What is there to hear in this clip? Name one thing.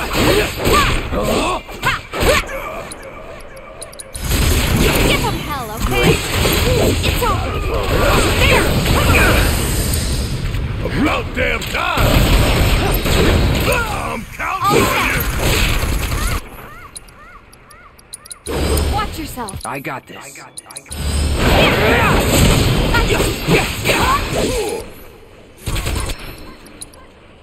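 Magic blasts and impacts boom loudly.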